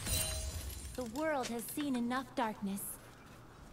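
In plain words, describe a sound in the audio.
A young woman's voice comes close through a microphone.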